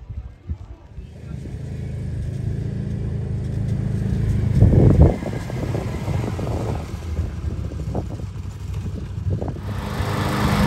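A small quad bike engine buzzes as the quad bike drives closer.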